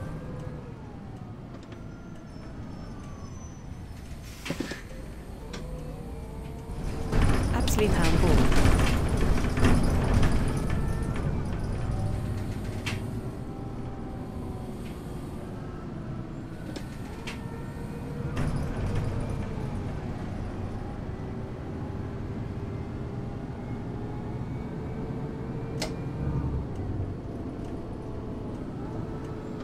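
A bus engine hums steadily and whines as it changes speed.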